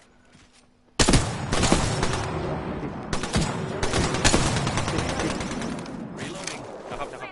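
Gunfire bursts out in rapid shots.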